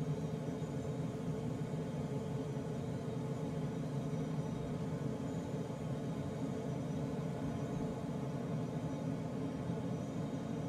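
Air rushes steadily past a glider's canopy in flight.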